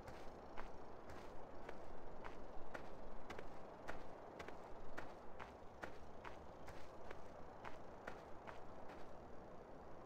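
Footsteps tap on hard pavement at a steady walking pace.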